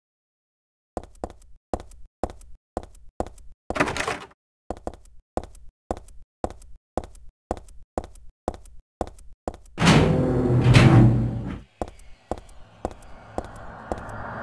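Footsteps tap at a steady pace on a hard floor.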